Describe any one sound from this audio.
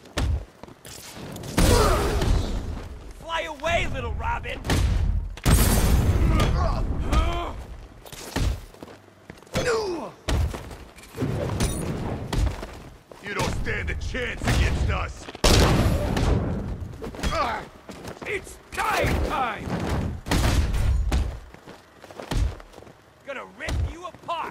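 Heavy punches and kicks land again and again in a fast brawl.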